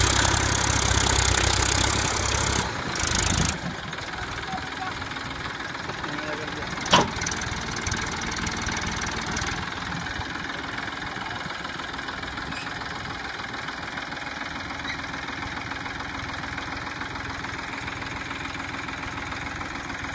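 A tractor engine roars and strains under a heavy load.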